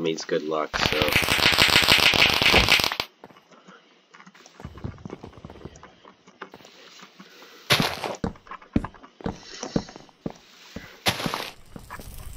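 A game's blocks break with short crunching sounds.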